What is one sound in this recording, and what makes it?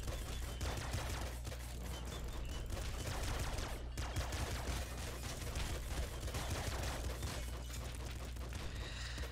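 Retro video game gunfire crackles rapidly and without a break.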